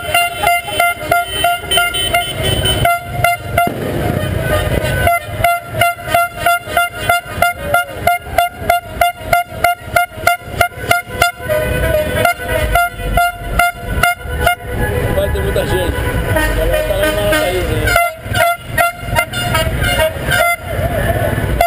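Car horns honk repeatedly in a quick rhythm.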